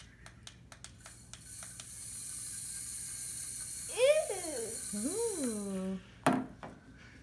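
A toy wand plays a loud hissing electronic sound with a sliding tone.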